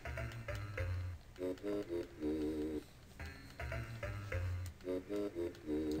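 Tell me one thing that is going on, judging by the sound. Chiptune video game music plays.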